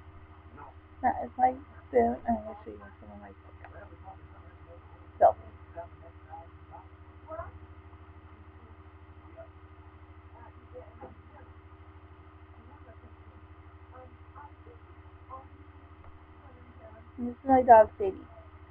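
A woman talks close to the microphone, in a quiet, low voice.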